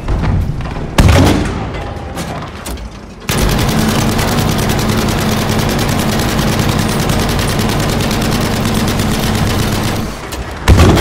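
A tank cannon fires with a heavy boom.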